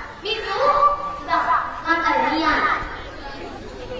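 A woman speaks with animation outdoors.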